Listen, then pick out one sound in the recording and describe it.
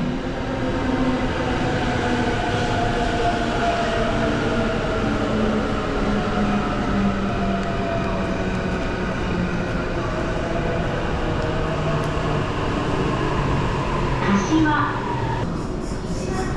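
An electric train rolls in with a falling whine and slows to a stop.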